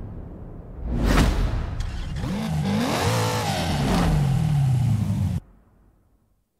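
A sports car engine starts up and revs loudly.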